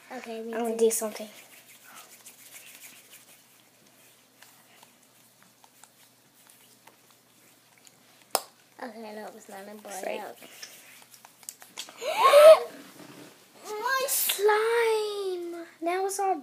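Hands rub and squish a soft ball of slime.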